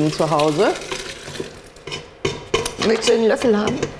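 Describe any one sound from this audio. Liquid pours from a pan into a jug.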